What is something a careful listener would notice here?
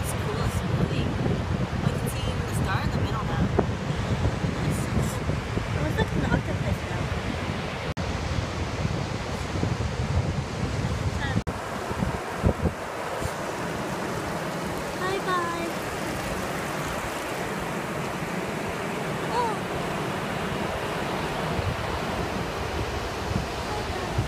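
Shallow water laps and ripples gently over sand.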